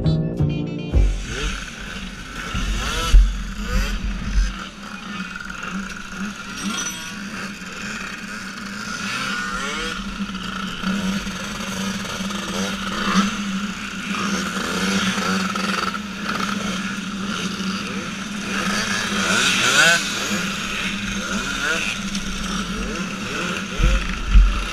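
Scooter engines idle and rumble nearby, outdoors.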